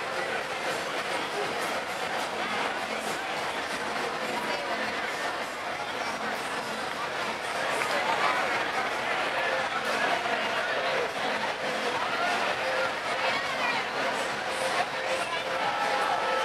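A busy crowd chatters loudly nearby outdoors.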